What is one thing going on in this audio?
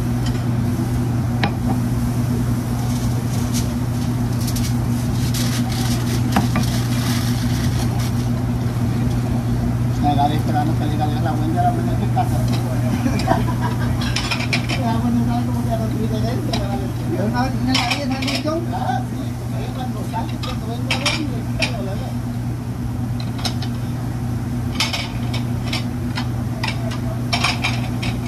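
Exhaust fans hum steadily.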